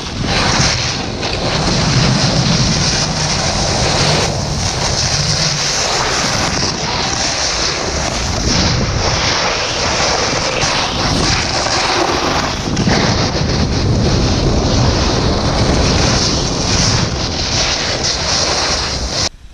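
Wind rushes past a microphone.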